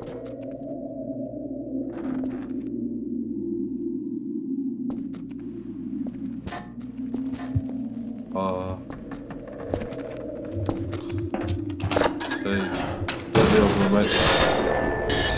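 A young man talks quietly into a microphone.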